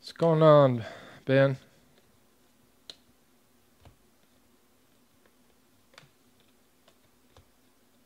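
Cards flick and tap softly as they are sorted by hand.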